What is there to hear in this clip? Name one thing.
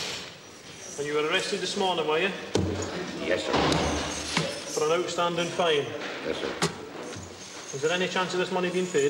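A man speaks in a low, subdued voice close by.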